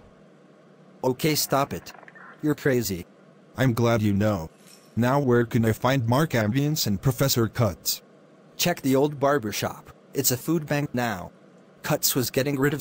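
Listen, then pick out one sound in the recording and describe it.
A man speaks calmly and close by, in a flat synthetic voice.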